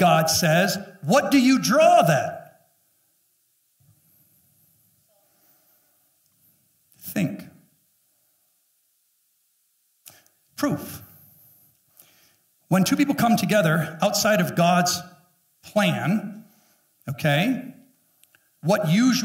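A middle-aged man speaks with animation through a microphone, with pauses.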